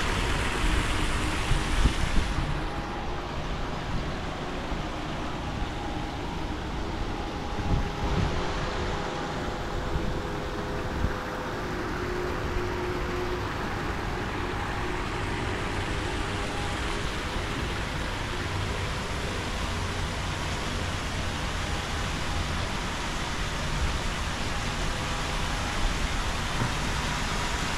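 Fountains splash and gush steadily nearby.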